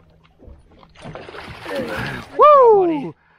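A fish splashes hard in the water.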